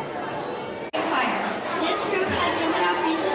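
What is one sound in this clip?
A young girl speaks into a microphone.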